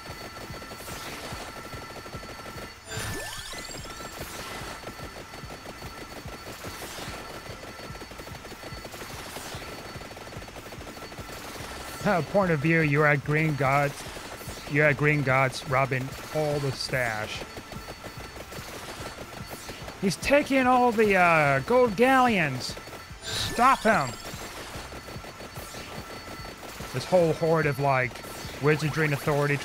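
Rapid electronic game effects crackle and chime without pause.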